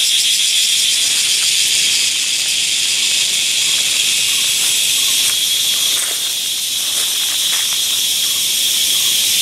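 Dry leaves rustle and crackle under chimpanzees walking on the forest floor.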